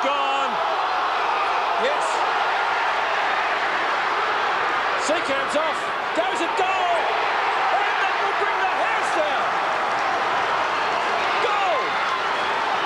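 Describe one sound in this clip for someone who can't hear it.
A large crowd roars and cheers loudly outdoors.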